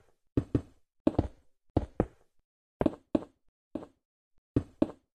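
Blocks of stone are struck in quick pairs of sharp knocks.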